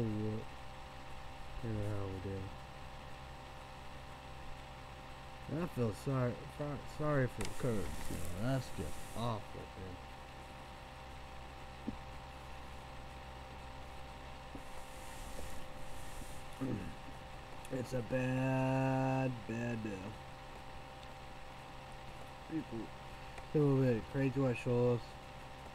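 A young man talks casually and close up, with pauses.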